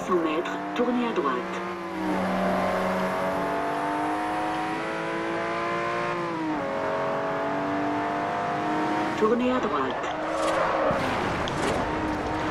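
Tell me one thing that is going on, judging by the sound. A car engine roars at high revs, rising in pitch through the gears.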